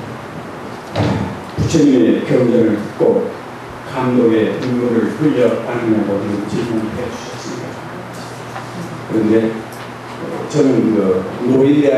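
An elderly man speaks calmly into a microphone, heard through a loudspeaker in an echoing hall.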